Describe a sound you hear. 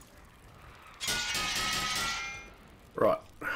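A bright metallic chime rings out.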